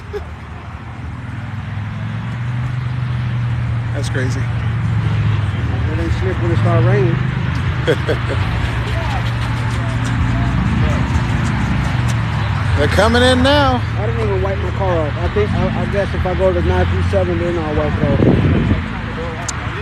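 Car engines rumble as cars drive slowly past.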